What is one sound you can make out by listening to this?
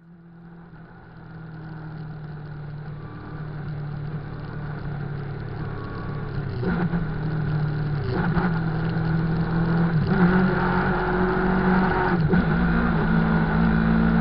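A motorcycle engine idles with a deep, steady rumble, growing louder.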